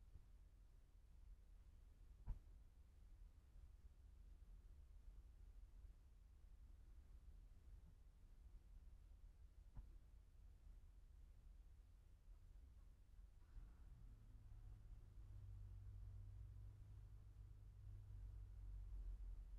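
Wind rumbles low and steadily outdoors.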